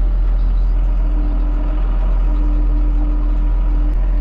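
A hydraulic loader whines as it lifts.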